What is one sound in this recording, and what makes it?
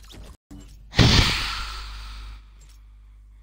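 A laser beam blasts with a loud burst.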